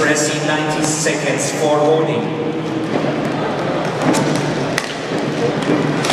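Skate wheels roll and scrape across a hard floor.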